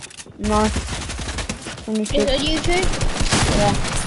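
Gunshots crack in quick succession.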